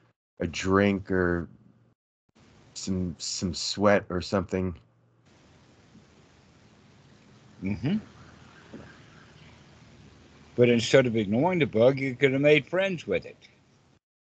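An elderly man talks with animation over an online call.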